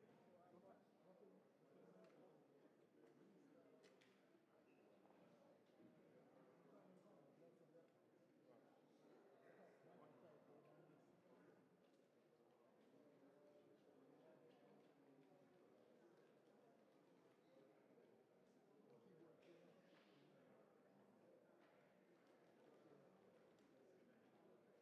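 A crowd murmurs quietly.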